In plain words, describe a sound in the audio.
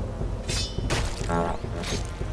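A blade slashes sharply through the air.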